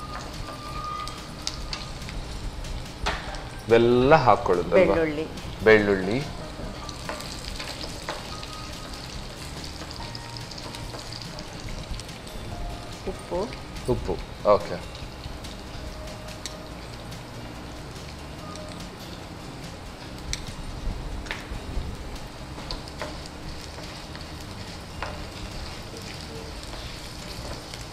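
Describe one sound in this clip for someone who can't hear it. A wooden spatula scrapes and stirs food in a frying pan.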